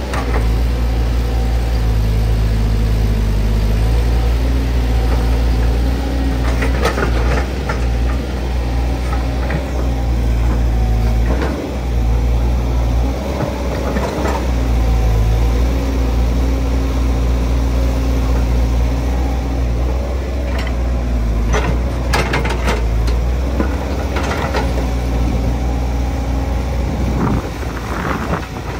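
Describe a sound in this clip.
A diesel excavator engine rumbles and drones steadily close by.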